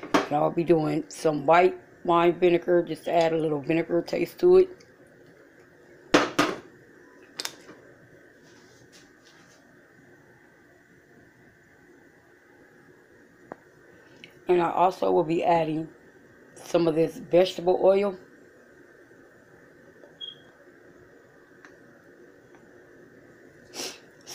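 A pot of soup bubbles and simmers gently.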